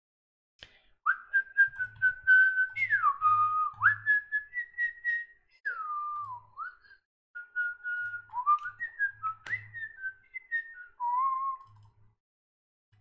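A man whistles a tune close to a microphone.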